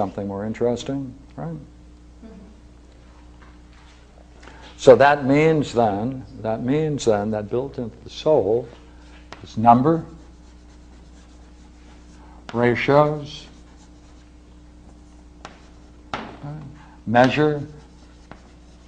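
An elderly man lectures calmly, pausing between phrases.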